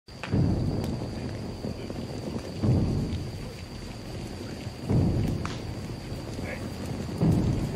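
Torches crackle and roar in the night air.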